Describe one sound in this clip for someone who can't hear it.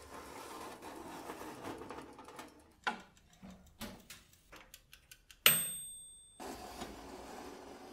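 A metal rack clatters and clinks against oven rails.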